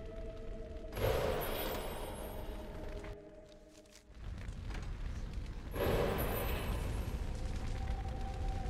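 Flames roar and whoosh.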